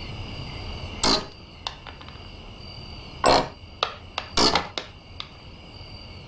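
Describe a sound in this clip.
Wooden planks creak and crack as they are pried loose.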